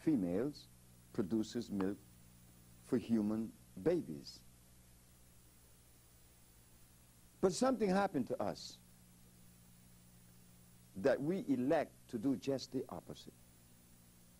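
An elderly man speaks calmly into a close microphone, in short bursts with pauses.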